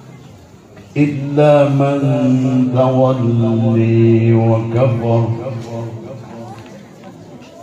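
An elderly man sings a long, drawn-out chant through a microphone.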